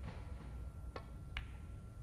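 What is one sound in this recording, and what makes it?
A cue strikes a snooker ball.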